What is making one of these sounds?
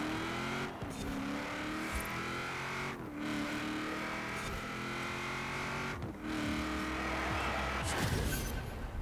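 A car engine roars at high revs, shifting up through the gears.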